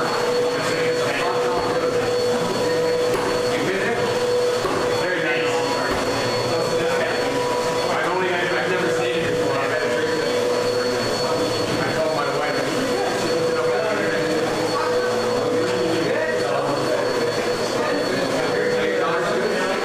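Men, women and children chatter in an echoing hall.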